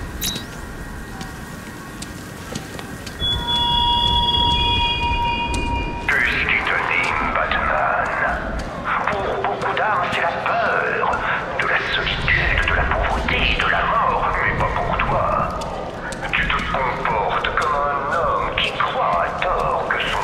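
Heavy footsteps fall on a hard street.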